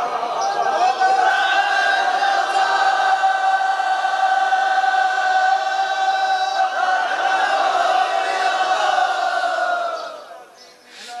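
A man chants a long, drawn-out note through a microphone.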